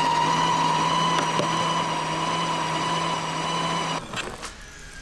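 An electric meat grinder hums as it grinds meat.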